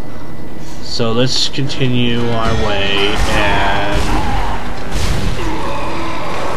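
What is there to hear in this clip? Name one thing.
A monster screeches and shrieks loudly.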